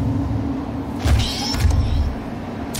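A heavy metal door slides open with a mechanical whir.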